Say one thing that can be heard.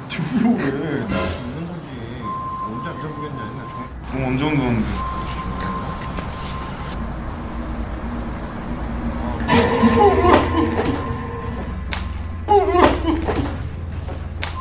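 Two men talk quietly nearby.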